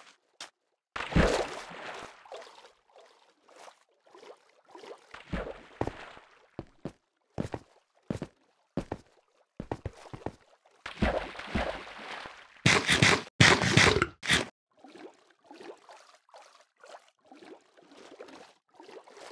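Water splashes and bubbles as a swimmer moves through it.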